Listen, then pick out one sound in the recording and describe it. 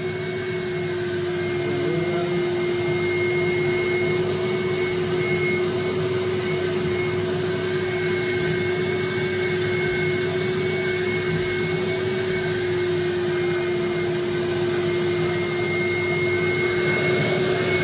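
A carpet cleaning machine whines and hums steadily.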